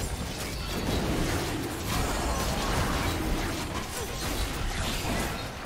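Magical blasts and impacts crackle in a fast fight.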